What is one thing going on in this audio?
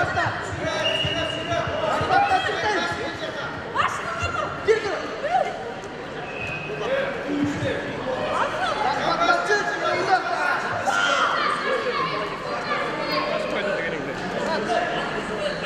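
Several people shout and call out in an echoing hall.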